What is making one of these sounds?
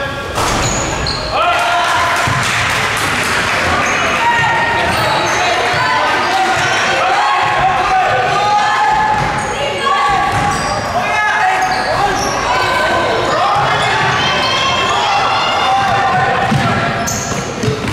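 Sneakers squeak sharply on a wooden court, again and again.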